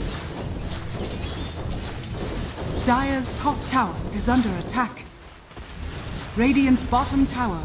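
Battle sound effects clash and crackle in a fantasy game.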